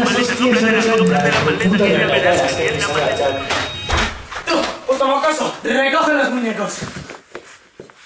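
A young man sings loudly and with animation close by.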